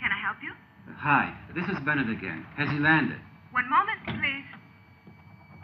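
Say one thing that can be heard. A man talks on a telephone, close by.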